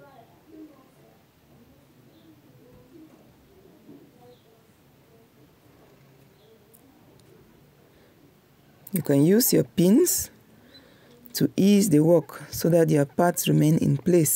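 A sewing machine runs, stitching fabric.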